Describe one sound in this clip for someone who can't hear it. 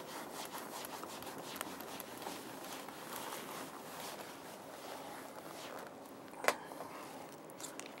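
A cloth wipes across a whiteboard.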